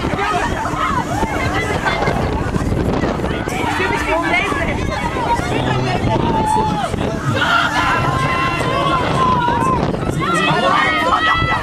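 A crowd of teenagers on a swinging fairground ride screams and shouts.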